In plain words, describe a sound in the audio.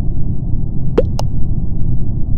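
A short electronic blip sounds as a vote is cast in a game.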